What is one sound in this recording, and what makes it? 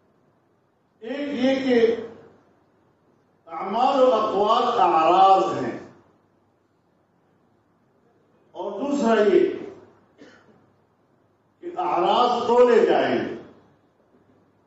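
An elderly man speaks slowly and solemnly into a microphone, in short phrases with pauses.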